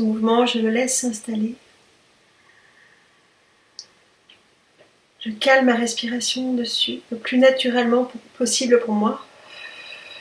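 A woman in her forties speaks calmly, close to the microphone.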